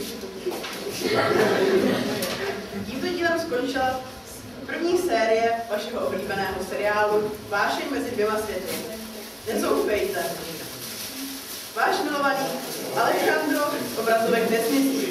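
A young woman reads aloud in a large, echoing hall.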